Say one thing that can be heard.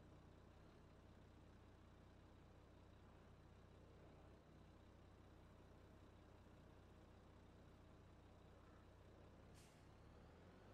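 A tractor engine idles with a low, faint hum.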